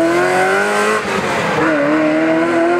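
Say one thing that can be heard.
A V8 sports car engine drops in pitch as the driver shifts up a gear.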